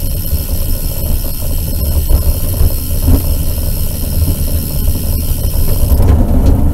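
Wind rumbles and buffets loudly against a moving rider.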